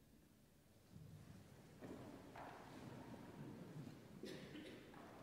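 A choir begins to sing softly in a large echoing hall.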